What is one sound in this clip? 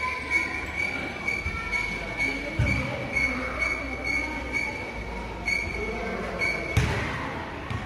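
A touchscreen kiosk beeps repeatedly in short, even pulses.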